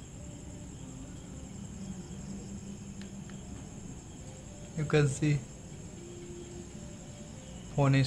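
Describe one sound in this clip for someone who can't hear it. Buttons on a mobile phone click softly as they are pressed.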